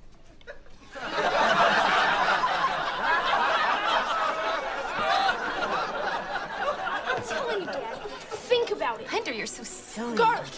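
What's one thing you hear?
A crowd chatters loudly around.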